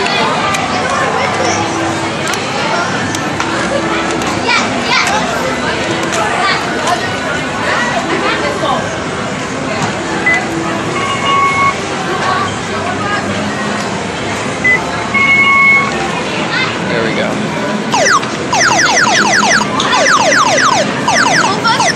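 Arcade games clatter and chime loudly all around.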